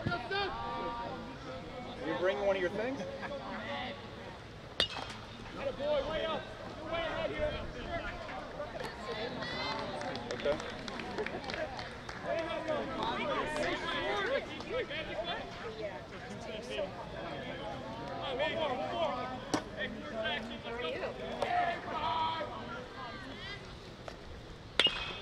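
A crowd of spectators and players chatter and call out outdoors.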